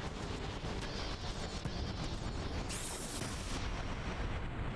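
Electricity crackles and zaps in sharp bursts.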